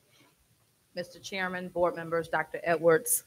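A woman speaks into a microphone in a large room.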